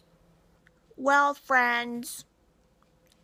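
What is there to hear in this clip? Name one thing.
A woman speaks with exaggerated expression close by.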